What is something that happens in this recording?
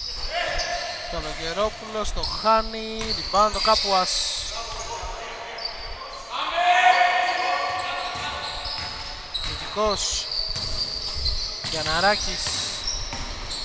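Sneakers squeak sharply on a court.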